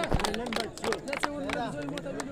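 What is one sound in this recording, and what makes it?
A crowd of young men clap their hands.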